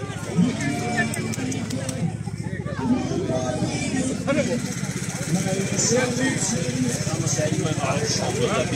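Men talk and call out loudly in a lively crowd outdoors.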